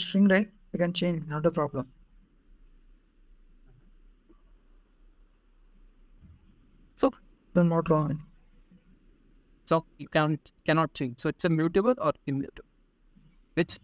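A young man speaks calmly through an online call, in short bursts with pauses.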